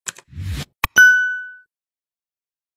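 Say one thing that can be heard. A small bell chimes once and rings out.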